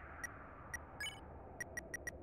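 A short electronic chime sounds as a game menu opens.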